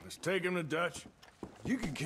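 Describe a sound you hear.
A man speaks calmly in a low, gruff voice.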